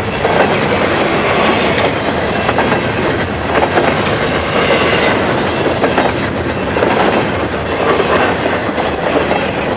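Wheels squeal and clank on the rails.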